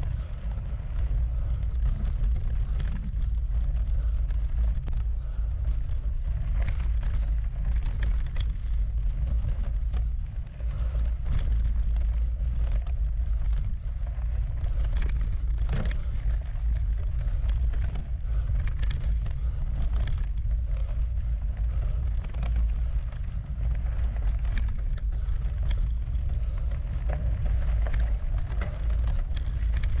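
Bicycle tyres crunch and rattle over a dirt trail.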